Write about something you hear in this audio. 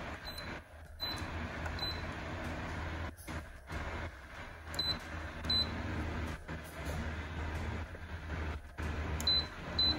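A device gives short high beeps as its buttons are pressed.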